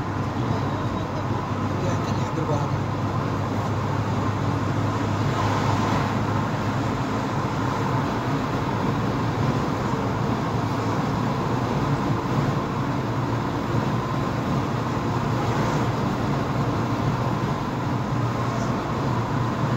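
Tyres roar on the road surface.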